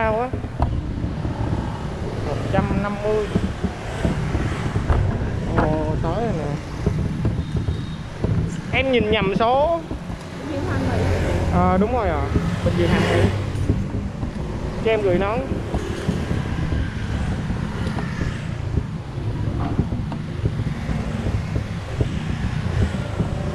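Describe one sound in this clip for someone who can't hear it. Other motorbikes pass by nearby in street traffic.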